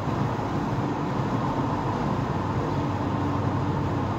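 A tanker truck rumbles past close by.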